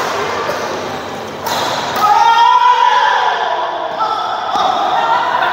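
A racket strikes a shuttlecock in an echoing hall.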